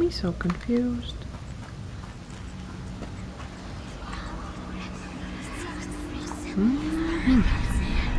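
A young woman speaks close to a microphone, with expressive rising and falling tones.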